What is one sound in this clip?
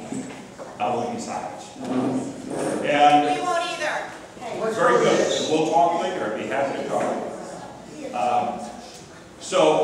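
A middle-aged man speaks with animation into a microphone over a loudspeaker, in a large echoing hall.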